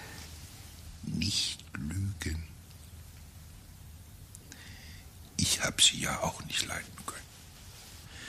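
An elderly man speaks weakly and slowly, close by.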